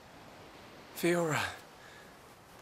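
A young man calls out softly and urgently, close by.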